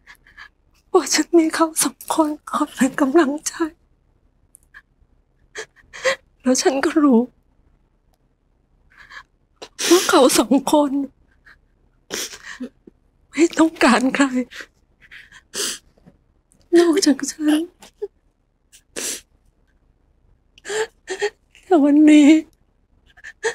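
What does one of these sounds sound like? A woman speaks tearfully and sobs close by.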